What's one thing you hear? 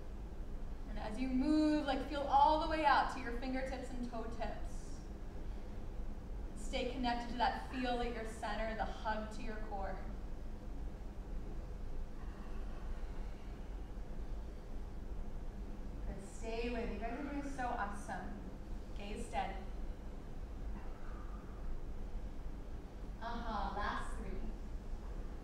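A woman speaks calmly nearby, giving instructions.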